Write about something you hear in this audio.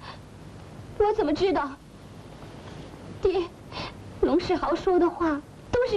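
A young woman speaks in a pleading voice.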